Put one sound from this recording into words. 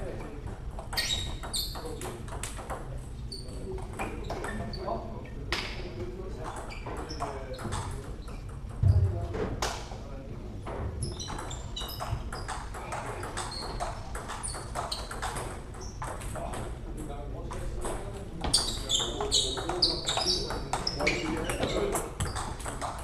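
Shoes squeak and scuff on a hard floor.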